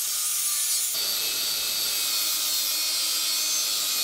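A cordless angle grinder whines as it cuts metal.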